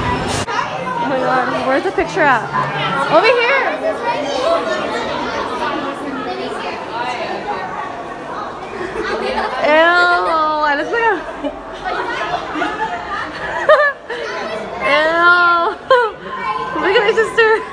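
Young people nearby talk and laugh close by.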